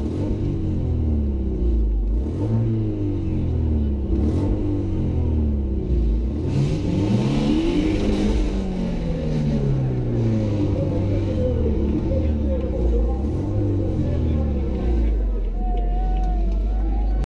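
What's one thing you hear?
A car engine revs hard, rising and falling over and over, heard from inside the car.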